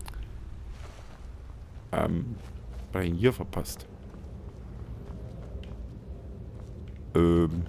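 Footsteps scrape on rocky ground.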